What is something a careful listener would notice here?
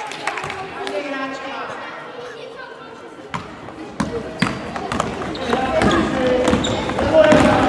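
Children shout and call out in an echoing hall.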